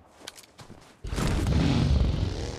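A vehicle engine roars.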